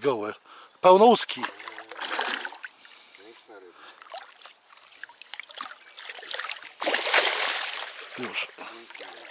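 A fish splashes and thrashes in water close by.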